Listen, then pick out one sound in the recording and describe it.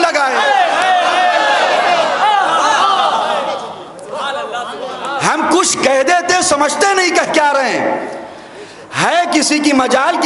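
A man speaks with animation through a microphone in a reverberant hall.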